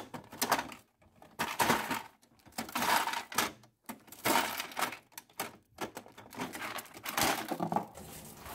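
Ice cubes rattle and clatter in a plastic tray.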